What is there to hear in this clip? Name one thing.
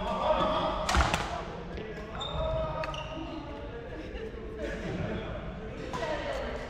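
Rackets strike a shuttlecock with sharp smacks in a large echoing hall.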